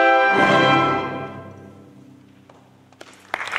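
An orchestra plays a final chord that rings out and fades in a large hall.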